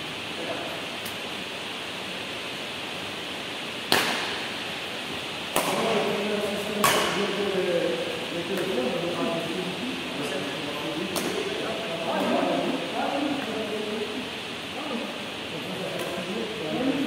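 Badminton rackets strike a shuttlecock with sharp pops in an echoing hall.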